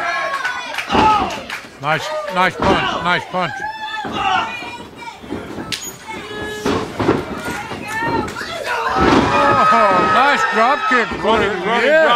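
Bodies thud heavily onto a ring mat.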